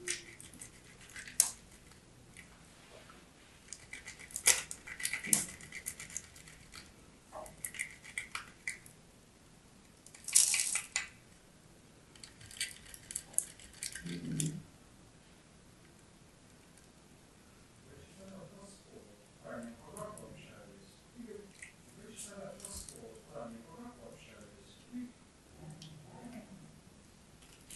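Crumbly chalk scrapes and crunches against a metal grater up close.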